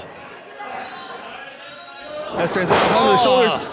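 A wrestler slams onto the ring mat with a heavy thud.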